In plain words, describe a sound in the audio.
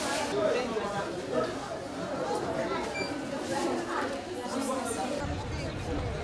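People chatter nearby in a busy room.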